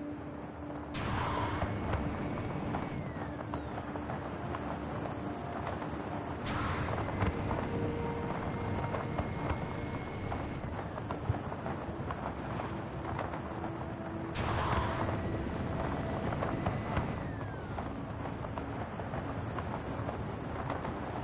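Wind rushes steadily past a fast-gliding wingsuit flyer.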